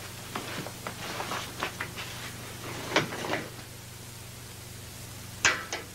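Fabric rustles as a man handles a bundle.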